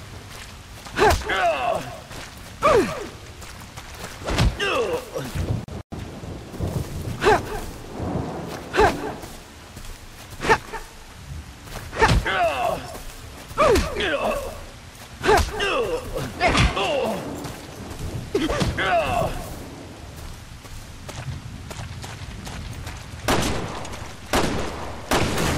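Heavy blows land with loud, sharp thuds again and again.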